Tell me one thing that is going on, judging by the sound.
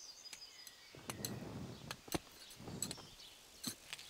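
A hoe scrapes and chops into soil.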